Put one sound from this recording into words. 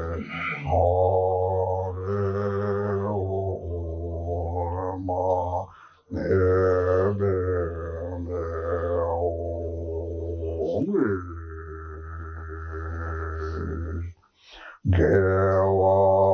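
An elderly man chants in a deep, long-held voice close to a microphone.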